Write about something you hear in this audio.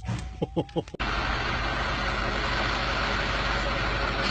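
An engine runs with a steady whine.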